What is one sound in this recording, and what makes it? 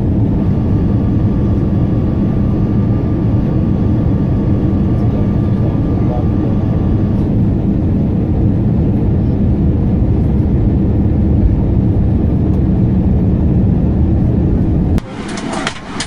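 A jet engine roars loudly and steadily, heard from inside the cabin.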